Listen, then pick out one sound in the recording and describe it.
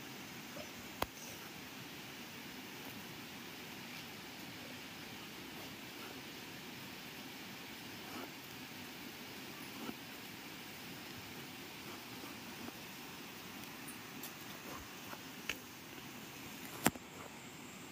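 A knife chops into the husk of a fruit with sharp knocks.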